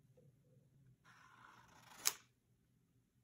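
Stiff paper cards rustle and tap as hands handle them.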